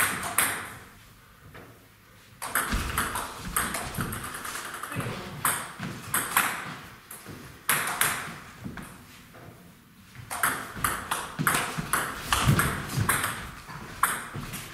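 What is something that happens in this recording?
A table tennis ball clicks back and forth off paddles and the table in an echoing hall.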